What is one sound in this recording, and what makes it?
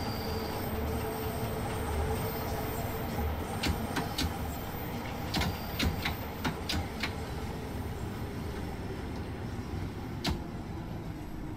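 A train rumbles steadily along the rails through a tunnel.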